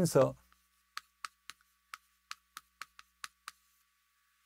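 Chalk taps against a board in quick clicks.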